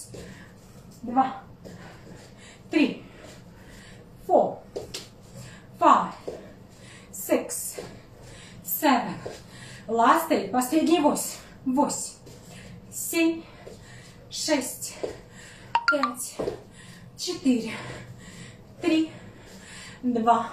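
A young woman speaks in short, calm phrases close by.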